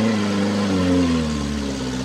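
Mud and water splash as a truck churns through a puddle.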